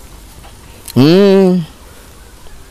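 A man's voice gives a brief, loud, wavering cry close to a microphone.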